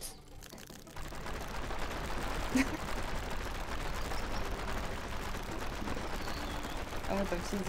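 A wooden carriage rolls and rattles over stone.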